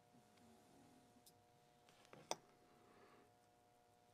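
A small metal tool clicks against a watch part.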